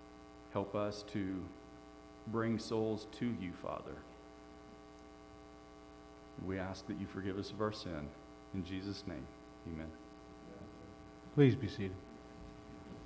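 A man speaks calmly into a microphone in a room with some echo.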